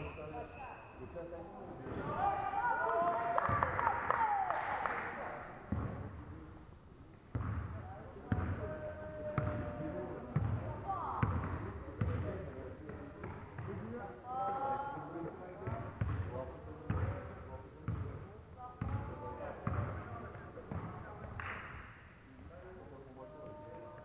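A basketball bounces on a wooden court, echoing in a large hall.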